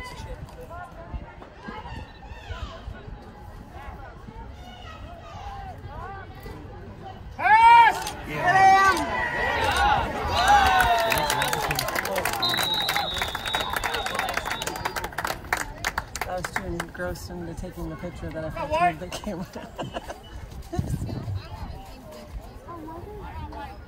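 Young players and coaches call out across an open field.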